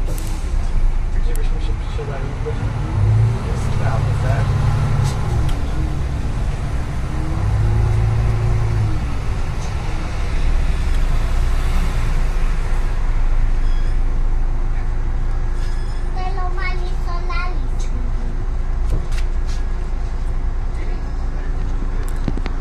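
A bus engine rumbles steadily from inside the bus as it moves slowly through traffic.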